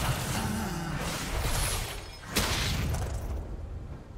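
Game spell effects burst and crash in a fight.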